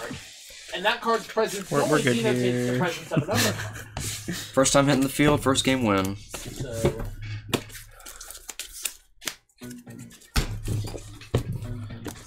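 Playing cards are shuffled and slapped on a table.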